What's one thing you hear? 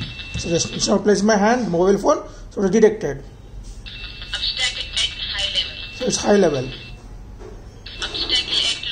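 A small electronic speaker beeps in a high buzzing tone, starting and stopping.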